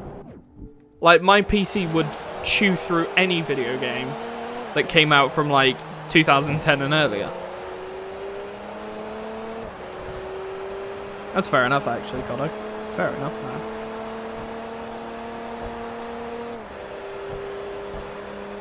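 A racing car engine whines steadily, its pitch climbing as it shifts up through the gears.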